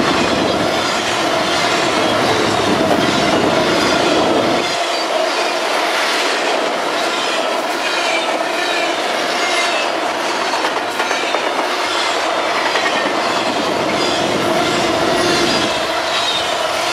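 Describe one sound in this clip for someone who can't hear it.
Steel wheels squeal and screech against the rails.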